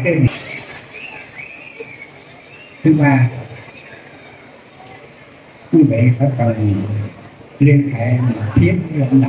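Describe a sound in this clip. A man chants in a deep, steady voice over a loudspeaker.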